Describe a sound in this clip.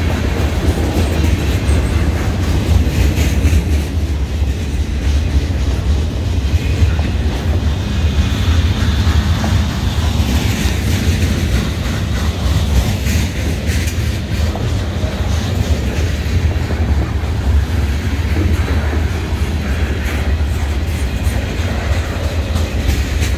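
Steel wheels clack and squeal on the rails.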